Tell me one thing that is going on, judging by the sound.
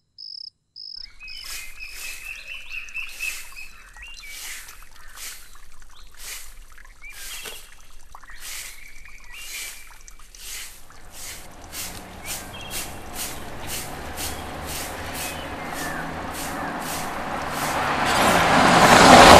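A broom sweeps the ground with quick, rhythmic scratching strokes.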